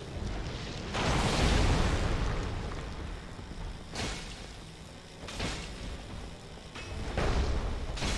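Loose debris clatters and scatters across a stone floor.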